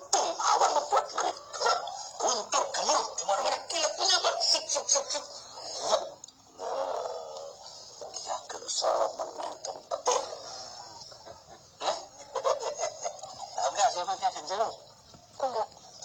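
An elderly man speaks with animation nearby.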